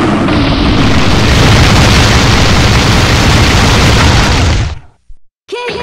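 A massive rumbling blast roars loudly, then cuts off abruptly.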